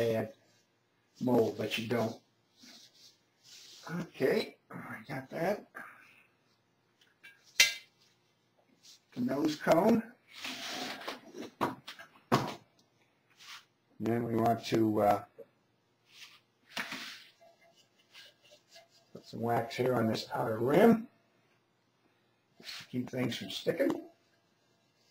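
An elderly man talks calmly close by, in bursts with pauses.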